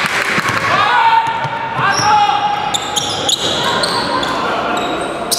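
Sneakers squeak sharply on a wooden court in a large echoing hall.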